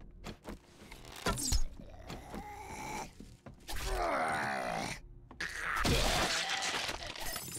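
A knife slashes into flesh with wet, heavy thuds.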